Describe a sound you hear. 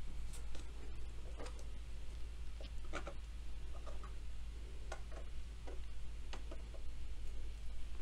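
Plastic figures click and tap as they are set down on a table.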